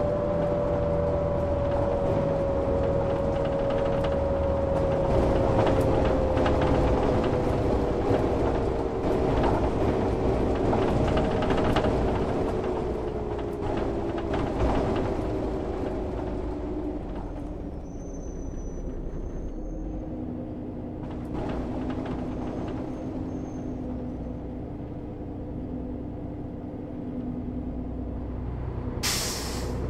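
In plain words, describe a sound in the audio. A bus engine hums steadily and slowly drops in pitch.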